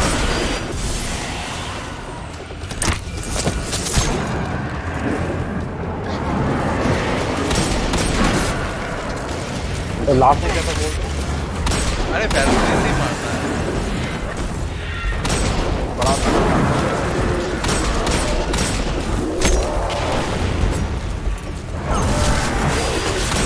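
Gunfire and blasts from a video game go off in quick bursts.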